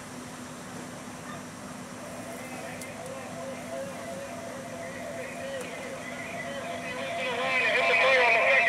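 A fire engine's motor idles with a steady low hum.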